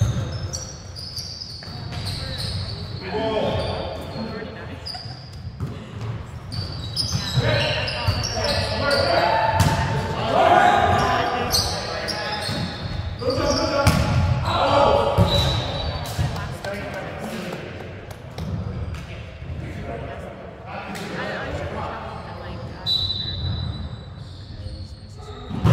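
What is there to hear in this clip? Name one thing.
Young men call out and shout to each other in a large echoing gym.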